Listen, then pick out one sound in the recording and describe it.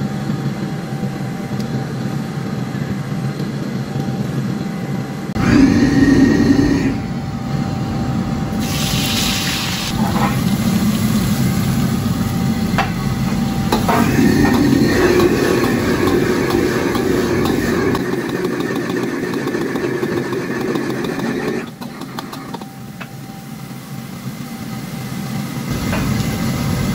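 A gas burner roars steadily.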